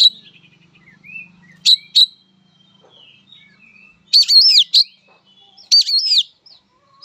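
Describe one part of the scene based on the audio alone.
A songbird sings loud, sharp whistling calls close by.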